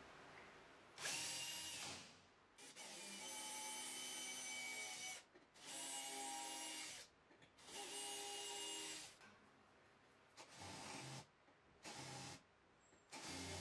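A drill press bores through metal with a loud, grinding whine in bursts.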